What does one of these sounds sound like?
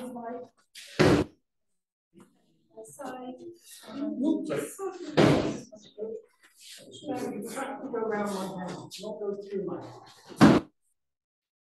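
A body thuds heavily onto a padded mat.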